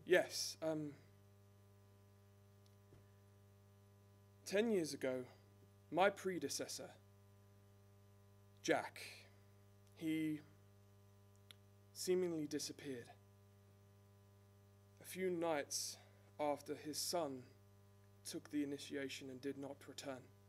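A man speaks into a microphone in short bursts, with pauses between.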